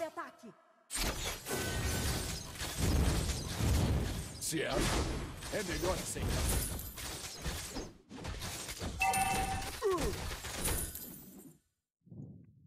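Game combat effects clash and crackle loudly.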